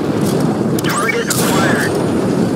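A shell explodes with a loud boom.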